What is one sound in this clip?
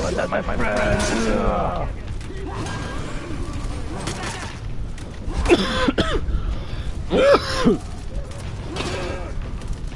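Swords and axes clash with sharp metallic hits.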